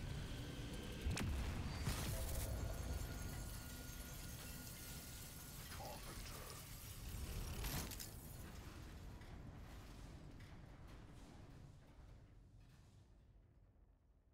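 A large explosion booms and fades.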